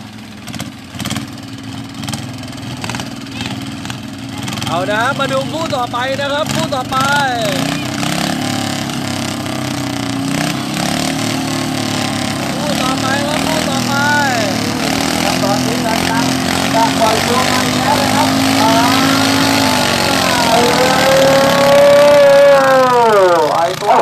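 Small tractor engines run loudly and rev up and down outdoors.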